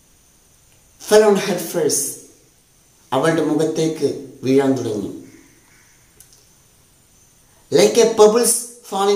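A young man reads aloud clearly into a close microphone, in short phrases with pauses.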